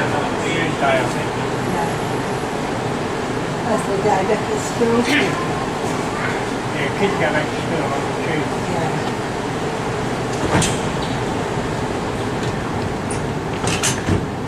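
A train's motor hums steadily as the train starts to roll.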